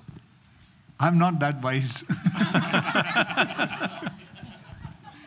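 A second man talks and laughs into a microphone.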